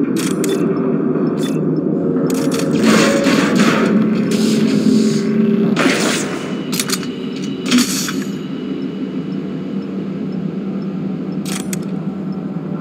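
Sharp mechanical clicks and clanks ring out.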